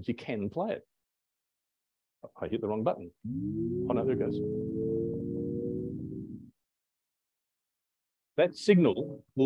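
A man speaks calmly to an audience.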